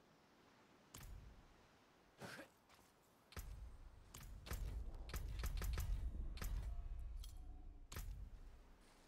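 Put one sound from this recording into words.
Short menu clicks sound one after another.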